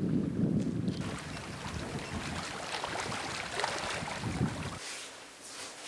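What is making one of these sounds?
Small waves lap and wash on open water.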